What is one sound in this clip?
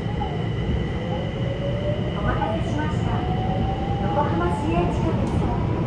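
A train's motor whines, rising in pitch as it speeds up.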